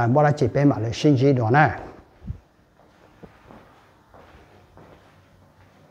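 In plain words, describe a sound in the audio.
Footsteps tap on a tiled floor.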